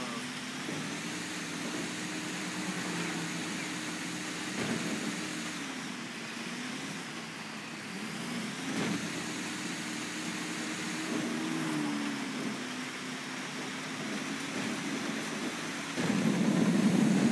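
A truck engine rumbles steadily as it drives along.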